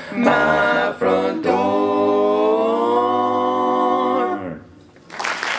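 A group of young men sing a chord together in close harmony through microphones.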